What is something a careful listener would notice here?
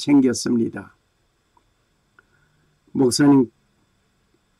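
An elderly man speaks calmly and slowly, in short phrases with pauses.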